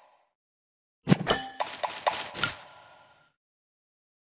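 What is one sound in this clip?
Game pieces pop and chime as they match and fall.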